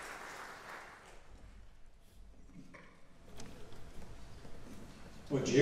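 A brass band plays in a large hall.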